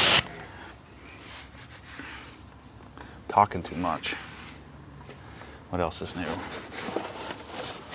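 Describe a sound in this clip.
A brush scrubs a wet wheel.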